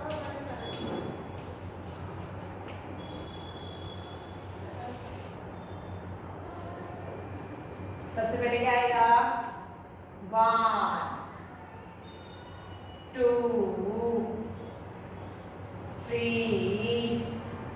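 Chalk scrapes and taps on a board.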